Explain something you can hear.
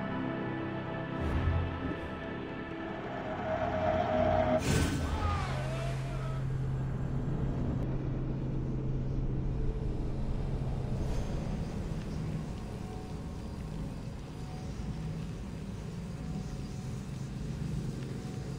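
A fire crackles softly in a brazier.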